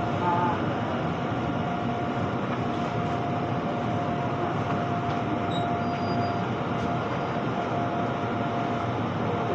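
A train rumbles as it slows to a stop.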